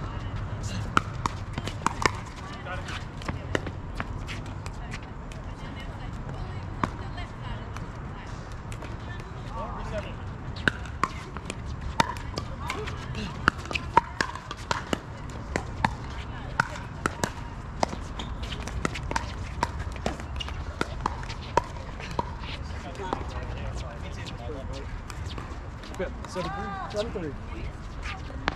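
Paddles pop sharply against a plastic ball in a quick rally outdoors.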